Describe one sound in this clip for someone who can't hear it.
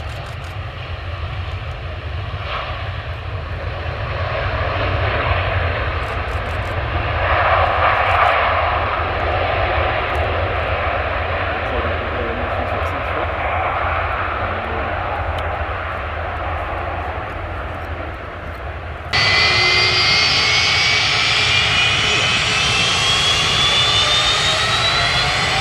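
The jet engines of a Boeing 757 roar as the airliner taxis.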